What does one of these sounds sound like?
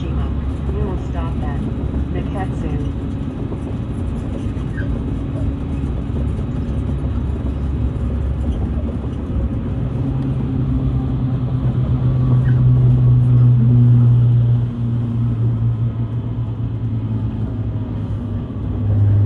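A car engine hums low and steadily while driving.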